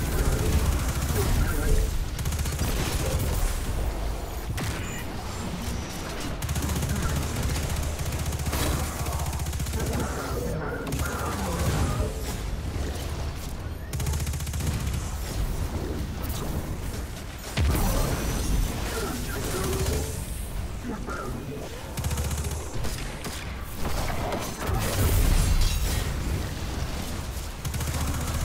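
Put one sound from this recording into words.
Gunfire and explosions from a video game sound in rapid bursts.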